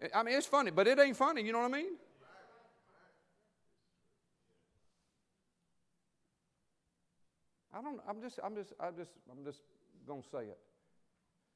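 A man speaks with animation through a microphone in a large hall, pausing between phrases.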